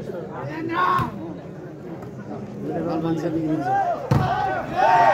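A volleyball is struck hard with a sharp slap.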